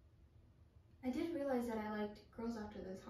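Another young woman answers calmly nearby.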